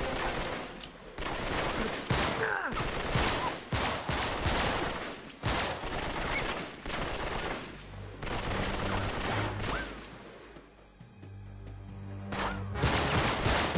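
Gunshots crack and bullets strike stone again and again.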